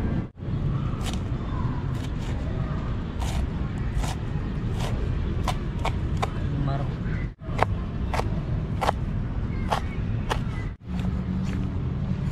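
A knife chops sharply against a plastic cutting board.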